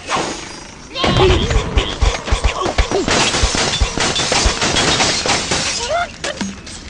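Wooden and glass blocks crash and shatter in a game.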